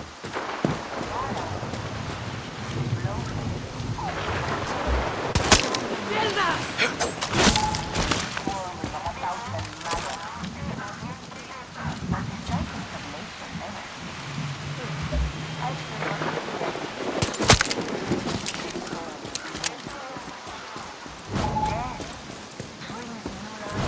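Footsteps thud and splash over wet ground.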